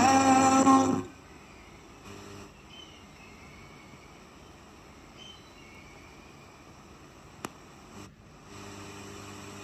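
A radio hisses faintly with static and whistles as it is tuned between stations.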